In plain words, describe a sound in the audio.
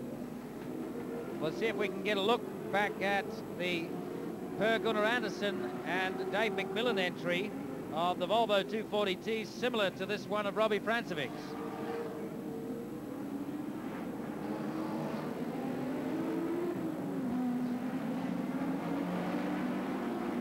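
Racing car engines roar and rev.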